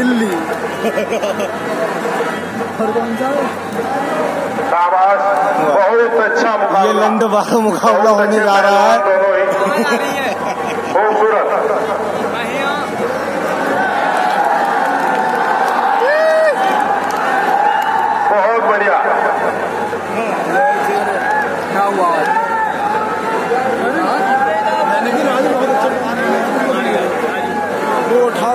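A large outdoor crowd chatters and shouts.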